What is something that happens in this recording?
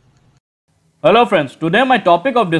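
A young man speaks with animation, close up.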